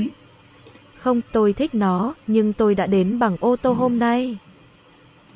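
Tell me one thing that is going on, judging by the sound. A synthetic voice reads out a phrase through a device speaker.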